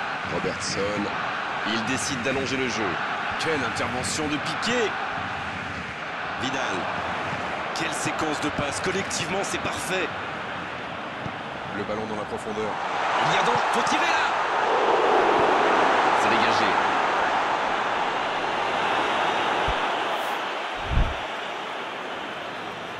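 A large crowd roars steadily and swells loudly as an attack nears the goal.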